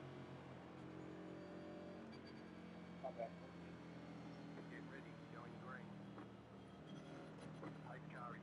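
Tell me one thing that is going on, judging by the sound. A race car engine drones steadily at low speed.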